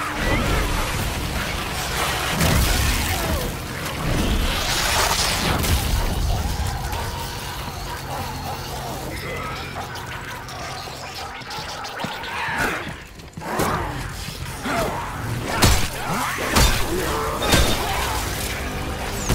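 A monster snarls and shrieks close by.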